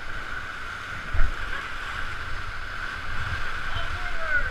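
Water splashes against a raft.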